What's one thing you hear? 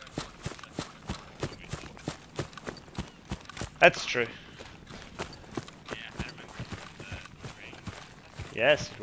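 Footsteps thud steadily on grass.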